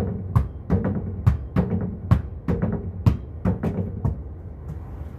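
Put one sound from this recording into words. A ball thuds repeatedly against a wooden board.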